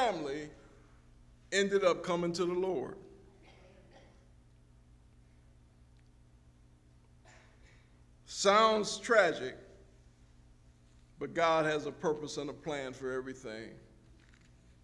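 A man speaks slowly and deliberately through a microphone, with long pauses.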